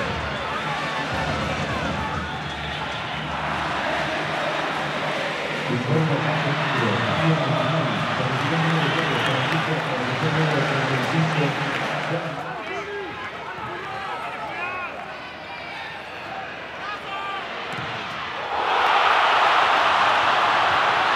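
A large stadium crowd roars and chants, swelling loudly near the end.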